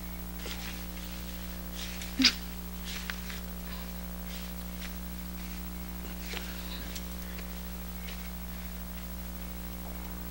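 A man rustles and folds blankets on the floor.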